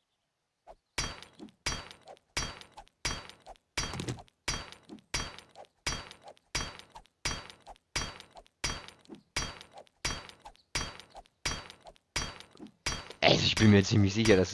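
A stone axe strikes hard ground again and again at a steady pace.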